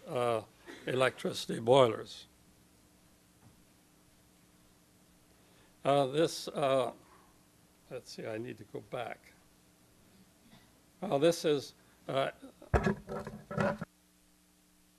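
An elderly man speaks calmly and slowly through a microphone, with pauses between phrases.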